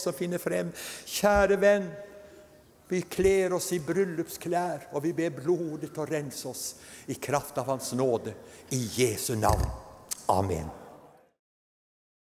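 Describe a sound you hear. An elderly man preaches with animation through a microphone in a large hall.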